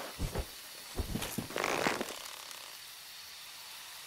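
A bow creaks as it is drawn.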